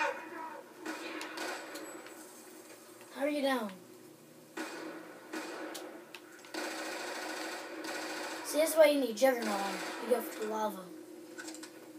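Gunshots and explosions from a video game play loudly through a television speaker.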